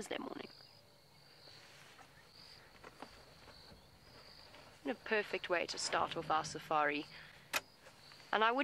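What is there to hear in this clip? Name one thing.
An elephant's heavy feet thud softly on a sandy track.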